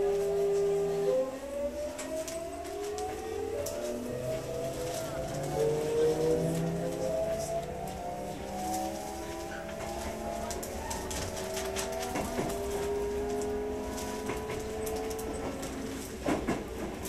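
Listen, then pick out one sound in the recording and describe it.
An electric train's motors whine, rising in pitch as the train speeds up.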